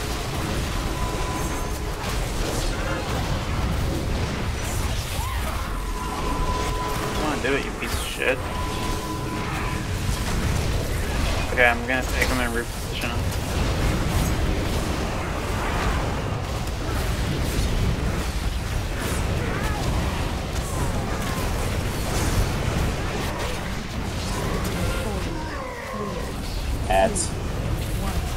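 Magic spells whoosh and crackle during a battle.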